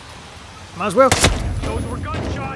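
A pistol fires a loud shot.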